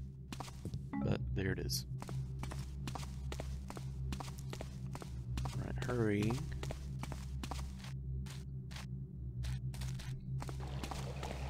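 Footsteps tread on stone at a steady pace.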